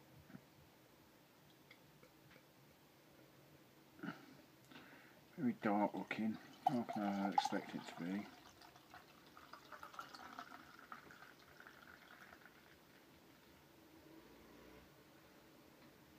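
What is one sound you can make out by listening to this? Beer pours from a bottle into a glass with a soft glug and fizz.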